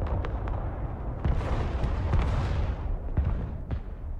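A missile launches with a loud roaring whoosh.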